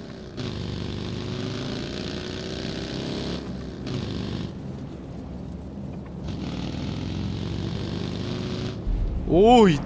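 A small off-road buggy's engine drones and revs as it drives over rough ground.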